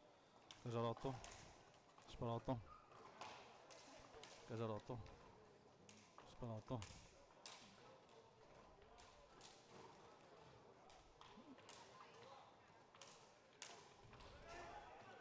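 Hockey sticks clack against a ball and each other in a large echoing hall.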